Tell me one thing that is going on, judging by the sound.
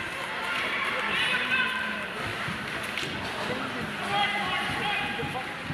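Young players call out to each other across a large echoing arena.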